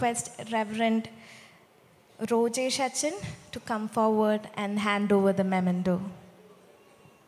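A children's choir sings together in a reverberant hall.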